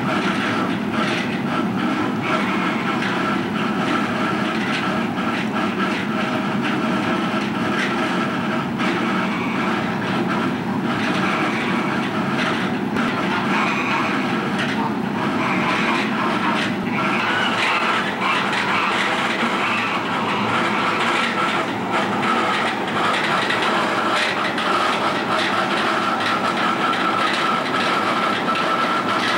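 Geese honk nearby.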